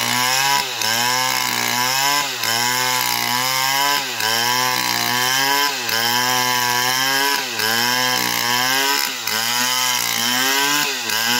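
A chainsaw engine roars loudly, its pitch dipping and rising as it cuts through wood.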